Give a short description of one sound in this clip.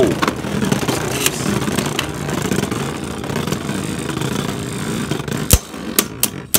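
Spinning tops whir steadily in a plastic arena.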